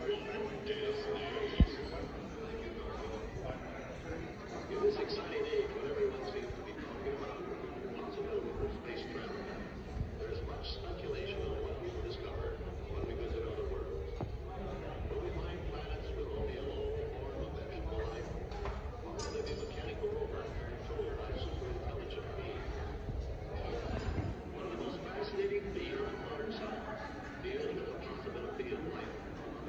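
A middle-aged man speaks calmly through loudspeakers in a large room.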